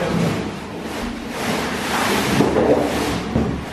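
Artificial pine branches rustle as they slide out of a box.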